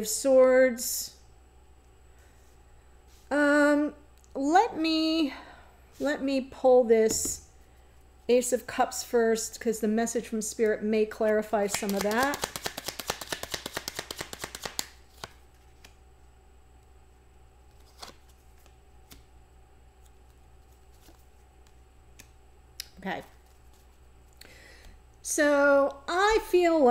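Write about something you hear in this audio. A middle-aged woman speaks calmly and close to a microphone.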